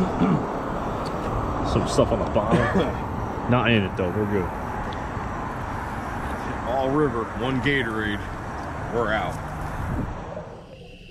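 A man talks casually close by, outdoors.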